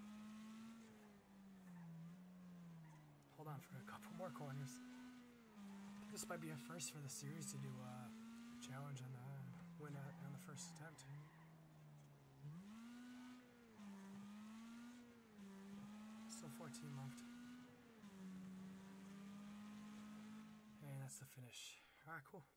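A car engine revs up and down as gears shift.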